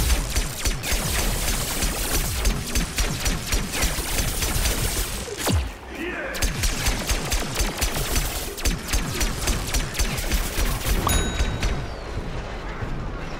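A cartoon gun fires rapid bursts of shots.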